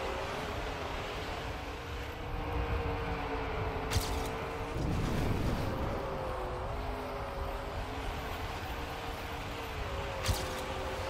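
A car engine hums steadily, rising and falling in pitch.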